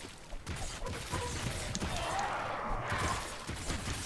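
Blades strike a large creature in quick blows.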